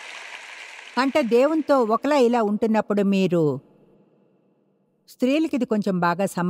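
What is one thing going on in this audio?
An older woman speaks with animation through a microphone in a large hall.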